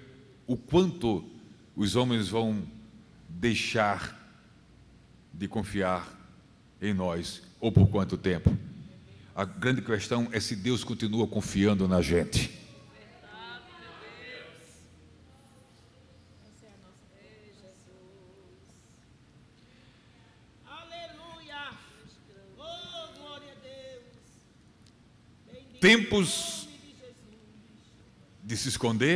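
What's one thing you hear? A middle-aged man speaks with animation through a microphone in a large echoing hall.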